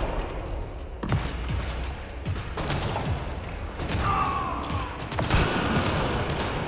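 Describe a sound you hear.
Video game gunfire cracks in short bursts.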